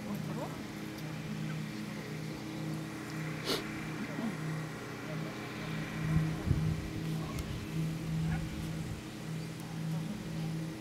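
Wind rumbles outdoors in gusts.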